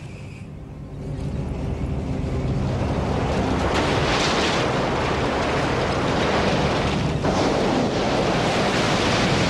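Heavy vehicle engines rumble and roar.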